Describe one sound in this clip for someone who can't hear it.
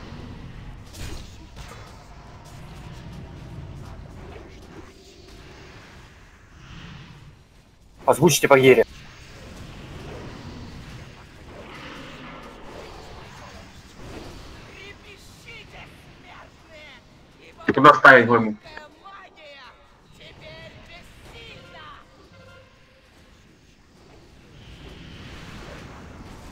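Fantasy battle sound effects clash and crackle.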